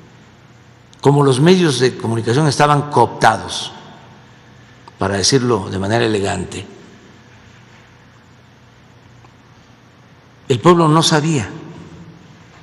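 An elderly man speaks into a microphone in short bursts, calmly, with pauses.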